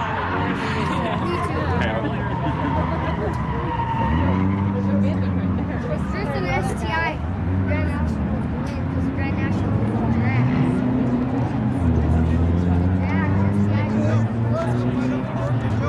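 Loud race car engines idle and rev in bursts.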